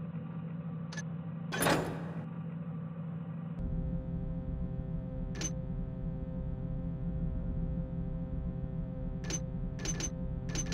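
Short menu clicks sound as buttons are pressed.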